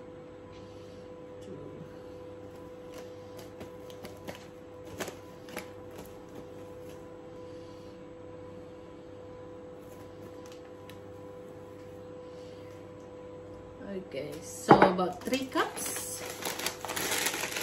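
A paper bag of flour crinkles and rustles.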